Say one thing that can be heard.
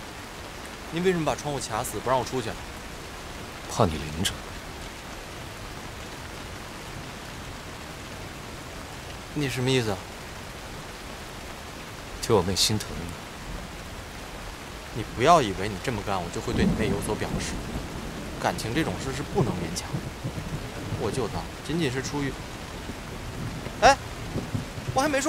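A young man speaks with strained emotion, close by.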